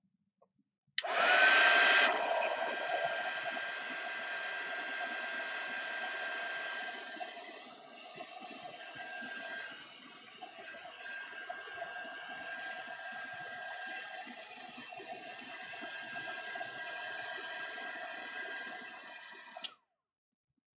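A heat tool blows with a steady whirring hum, then switches off.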